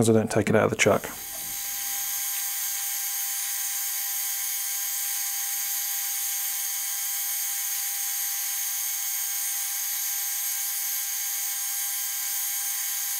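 A lathe runs with a steady, high whirring hum.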